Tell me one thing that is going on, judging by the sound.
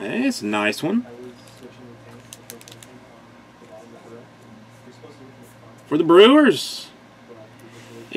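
A foil card pack wrapper crinkles and tears open.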